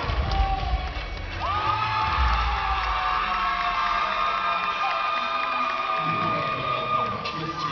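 A man sings loudly in a large hall, heard from the audience.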